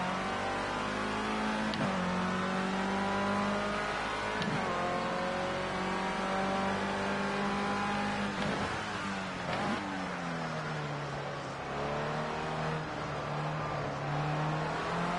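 A racing car engine whines at high speed, its pitch dropping sharply at each gear change and on braking.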